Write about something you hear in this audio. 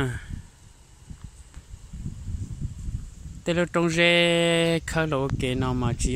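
Wind gusts outdoors, rustling the grass.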